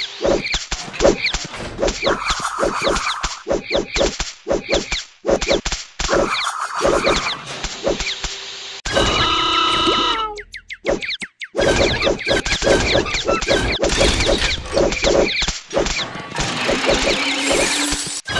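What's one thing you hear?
A cartoon pie splats against a target.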